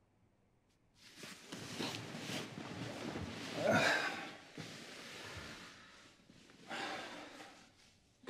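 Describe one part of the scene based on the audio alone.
Bedsheets rustle as someone shifts in bed.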